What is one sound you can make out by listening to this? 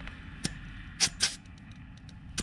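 A valve cap clicks onto a tyre valve.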